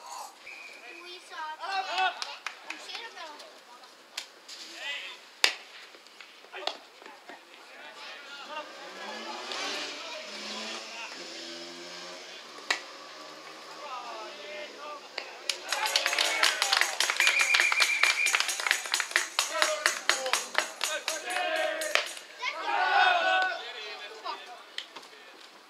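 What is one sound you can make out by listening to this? Several men shout and call out to each other across an outdoor field.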